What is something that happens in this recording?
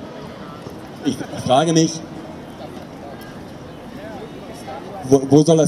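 A middle-aged man speaks loudly into a microphone through a loudspeaker outdoors.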